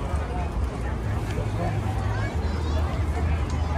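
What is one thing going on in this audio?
A crowd of men and women chat nearby outdoors.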